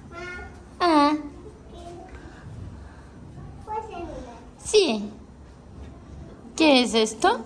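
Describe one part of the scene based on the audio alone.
A small child squeals and babbles loudly nearby.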